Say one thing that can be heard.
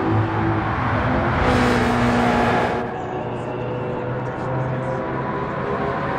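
A V8 sports car engine roars.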